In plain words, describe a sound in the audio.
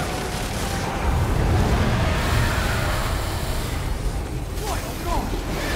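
A huge monster growls and roars.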